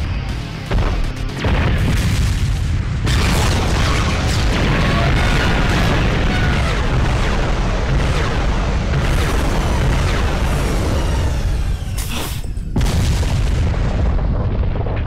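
Energy blasts roar and crackle loudly.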